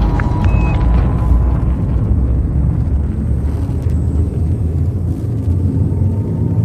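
A spaceship's engine hums low and steady.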